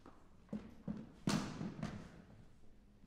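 A chair scrapes and thumps as it is set down on a wooden stage.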